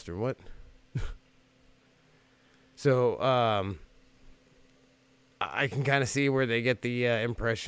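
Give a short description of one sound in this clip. A man speaks with animation into a microphone, in short bursts.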